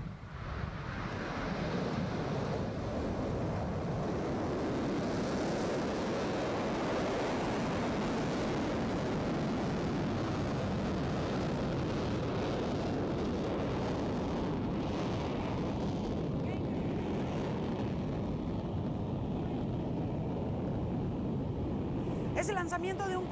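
A rocket engine roars steadily with a deep rumble.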